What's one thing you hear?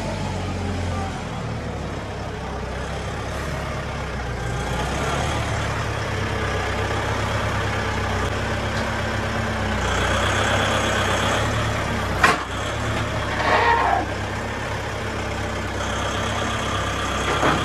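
A tractor engine rumbles steadily and draws closer.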